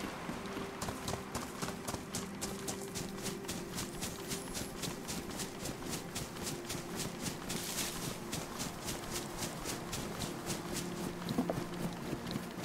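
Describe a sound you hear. Footsteps crunch quickly through dry grass.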